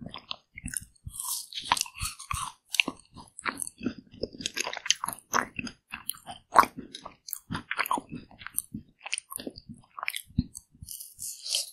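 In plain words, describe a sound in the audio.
A woman bites into a frozen ice cream bar with a crisp crack.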